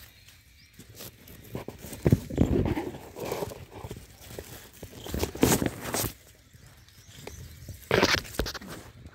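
Leaves and branches rustle close by.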